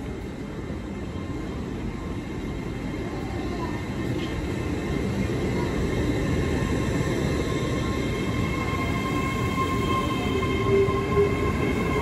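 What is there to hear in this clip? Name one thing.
Train brakes squeal with a high whine as the train slows.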